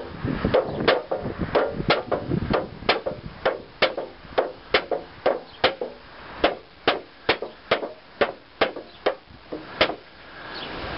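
A knife blade repeatedly stabs into a plastic lid with sharp taps.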